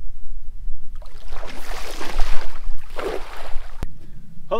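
Shallow water splashes as a man wades through it.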